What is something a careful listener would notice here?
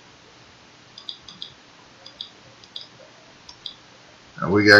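Soft interface clicks tick in quick succession.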